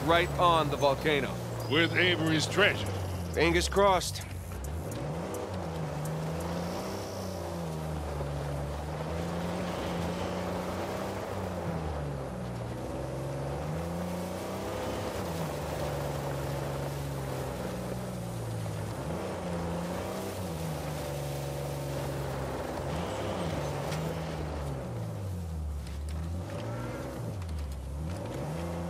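A car engine hums and revs up and down as it drives over rough ground.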